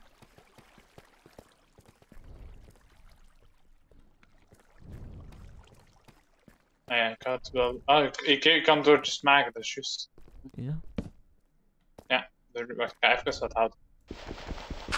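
Footsteps tap on stone.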